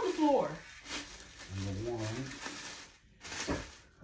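Plastic wrap crinkles as it is pulled off.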